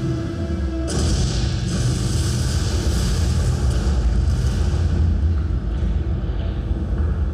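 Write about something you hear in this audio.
A deep explosion rumbles through loudspeakers.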